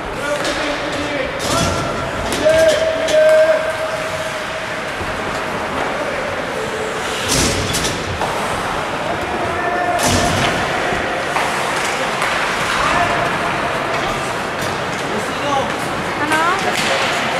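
Skate blades scrape and hiss across the ice in a large echoing rink.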